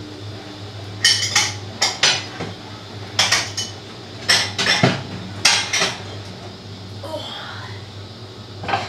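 Dishes clatter on a counter.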